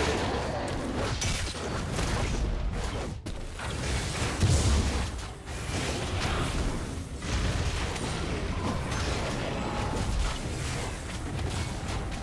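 Fighting sound effects from a video game clash and thud steadily.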